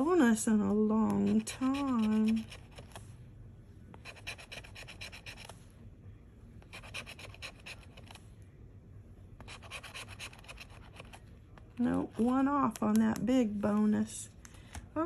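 A scraper rasps across a card in quick, repeated strokes.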